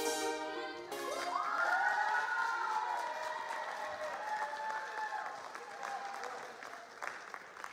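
Young people on stage cheer and whoop.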